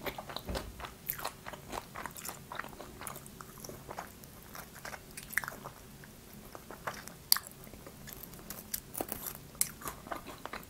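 A young woman chews and bites crunchy food close to a microphone.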